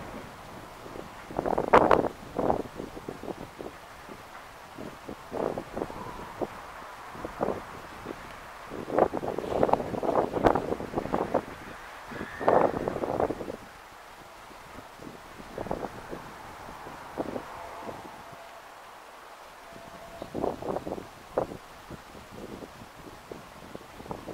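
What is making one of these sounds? A train rumbles along the tracks in the distance.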